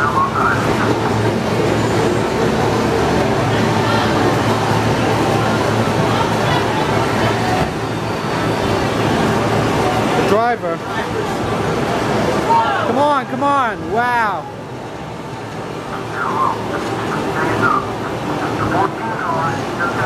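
A racing game roars with loud engine noise from its speakers.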